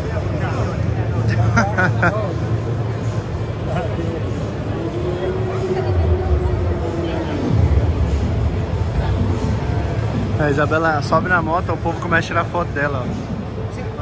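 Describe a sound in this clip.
A man speaks close by in a casual tone.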